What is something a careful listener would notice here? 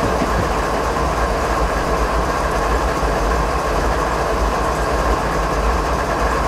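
A diesel locomotive engine rumbles steadily close by.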